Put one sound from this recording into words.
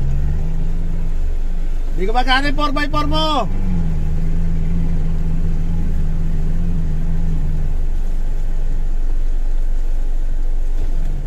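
An off-road vehicle's engine hums low and steady.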